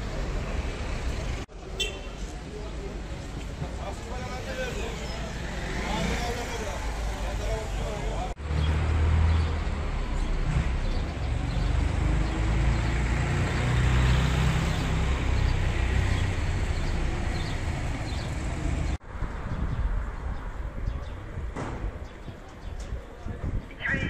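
Cars drive by on the street.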